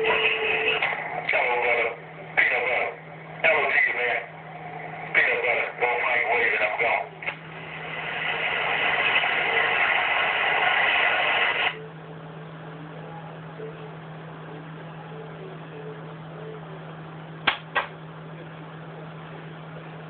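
A radio receiver hums low and steadily.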